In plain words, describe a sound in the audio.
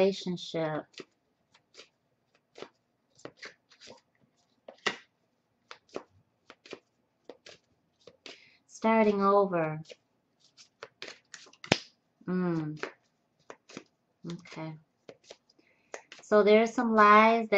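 Cards rustle and tap softly as hands handle them.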